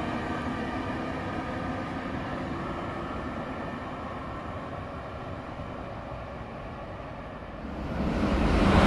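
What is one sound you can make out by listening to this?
A distant train hums faintly as it approaches.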